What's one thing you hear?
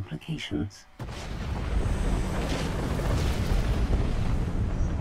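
Explosions rumble and roar in a space battle.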